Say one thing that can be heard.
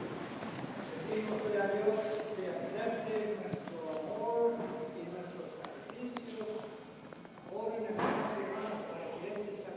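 A man speaks calmly and steadily, his voice echoing in a large hall.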